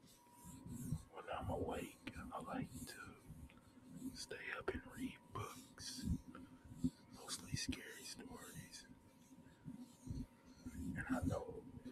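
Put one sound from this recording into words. A young man speaks quietly and muffled, close by.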